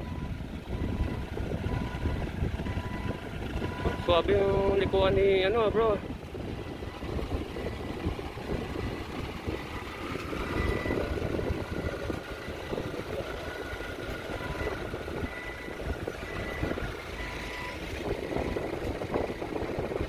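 A forklift engine idles and rumbles nearby as the forklift drives slowly.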